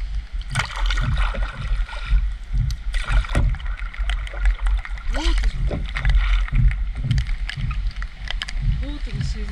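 Water splashes and laps against the hull of a small boat.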